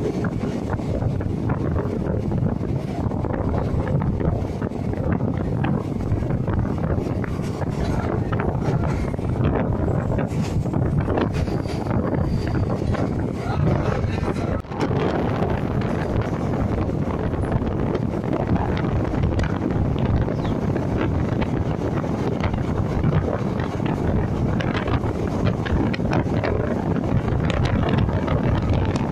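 A train rumbles and clatters steadily along the tracks.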